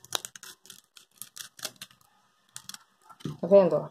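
Scissors snip through thin plastic.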